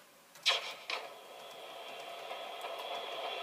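A racing game's engine hums through a television speaker.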